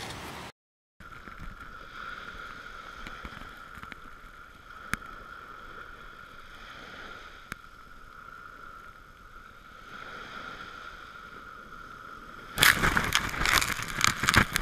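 Small waves wash softly onto a beach.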